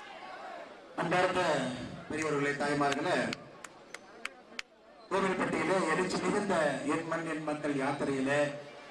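A young man speaks forcefully into a microphone over a loudspeaker.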